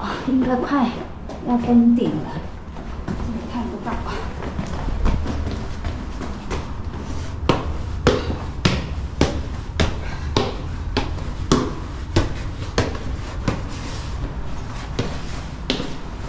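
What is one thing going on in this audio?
Footsteps thud steadily on stone steps in an echoing space.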